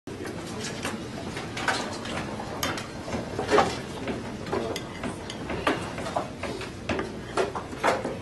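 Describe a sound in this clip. Drums and cymbals are struck in a loose rhythm.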